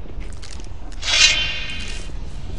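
A magic blast bursts with a whoosh.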